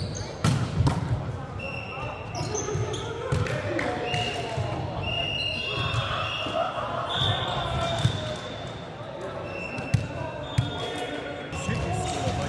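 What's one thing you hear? Young men call out and chatter across the court.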